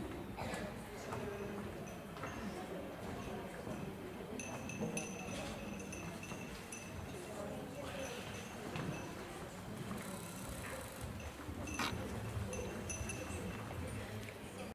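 Girls and spectators murmur and chatter in a large echoing hall.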